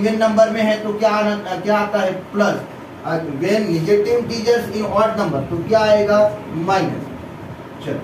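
A man speaks steadily and clearly, explaining at close range.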